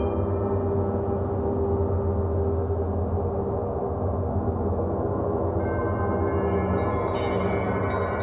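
Large gongs hum and shimmer in a deep, swelling drone.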